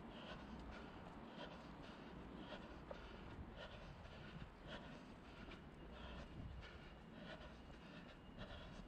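Footsteps tap steadily on stone paving outdoors.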